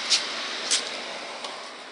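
A hand taps on a door.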